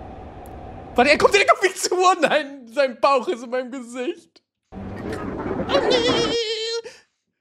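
A young man laughs and shouts loudly into a microphone.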